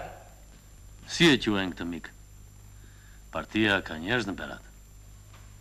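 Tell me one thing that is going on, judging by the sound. A man speaks in a low, measured voice.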